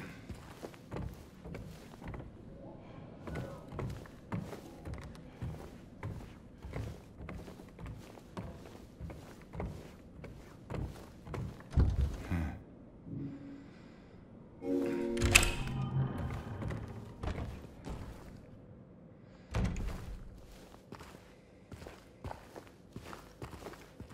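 Footsteps thud on a creaky wooden floor.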